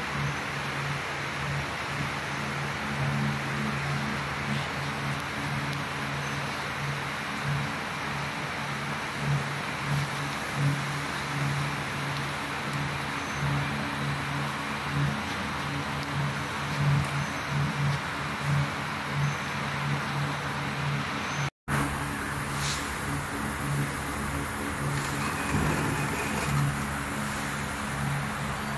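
A large machine hums with a low, steady, pulsing drone.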